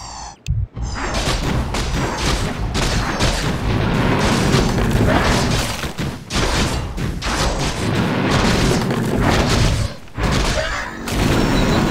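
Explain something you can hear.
Magic spells crackle and blast.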